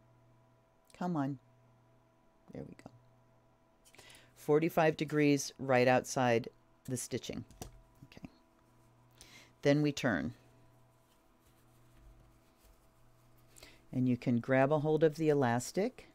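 An older woman talks calmly into a close microphone, as if on an online call.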